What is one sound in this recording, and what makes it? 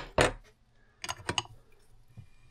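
A wrench ratchets with a few clicks.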